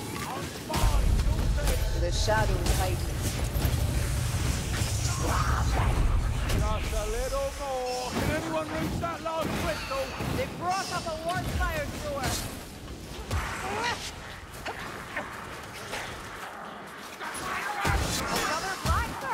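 Creatures grunt and shriek as they are struck.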